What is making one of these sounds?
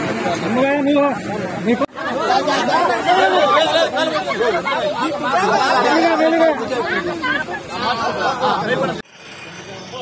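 A crowd of men shout and talk loudly over each other close by.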